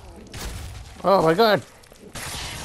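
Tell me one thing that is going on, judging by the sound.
A zombie lets out a loud, wavering howl.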